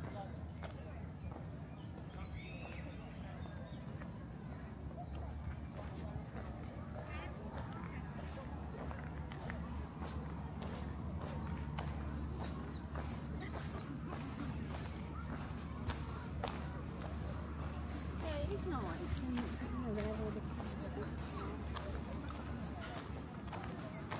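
Distant people chatter outdoors.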